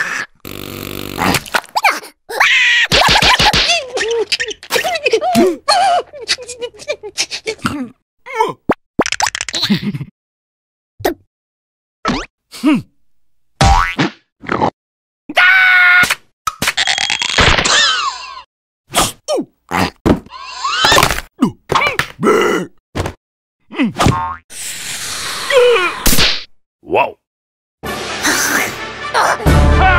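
A high, squeaky cartoon voice chatters and squeals with animation.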